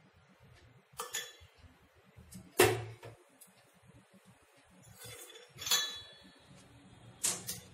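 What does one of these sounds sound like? A metal spoon clinks against a small bowl.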